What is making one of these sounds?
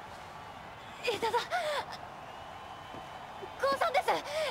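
A young woman speaks playfully with animation.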